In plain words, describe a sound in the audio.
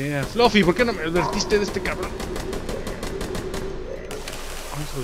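A gun fires in a rapid burst of shots.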